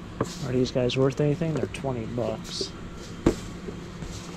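A cardboard toy box is handled and tapped.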